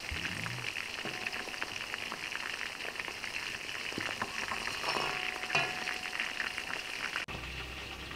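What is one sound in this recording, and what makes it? A ladle scrapes against a metal pot.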